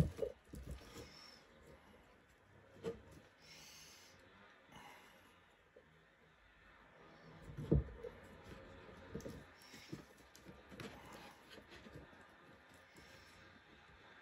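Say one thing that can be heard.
Cord rustles and slides softly as it is pulled and knotted by hand.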